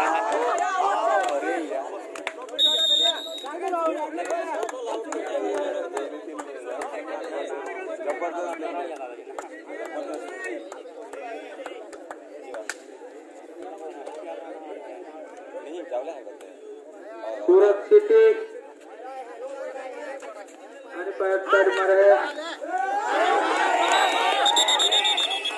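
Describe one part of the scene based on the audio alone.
A large crowd of spectators chatters and calls out outdoors.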